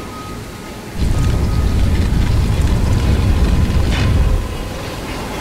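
A heavy stone platform rumbles and grinds as it rises.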